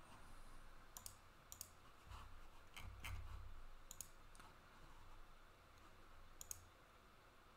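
A stiff card softly clicks and rustles between fingers.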